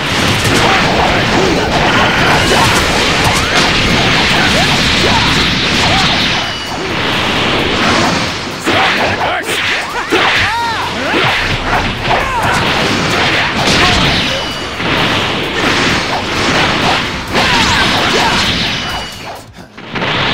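Punches and kicks land with sharp hits.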